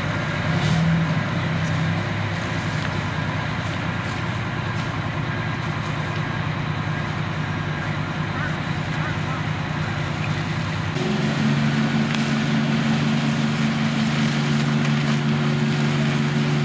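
A fire engine's motor hums steadily.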